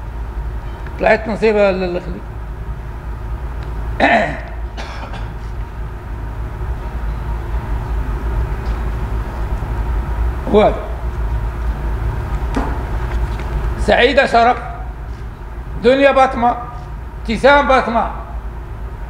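An elderly man speaks forcefully into microphones in short bursts.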